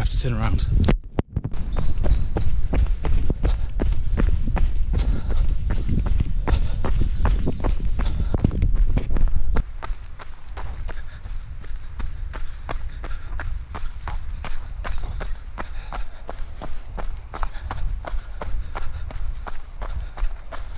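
A man speaks breathlessly, close to the microphone.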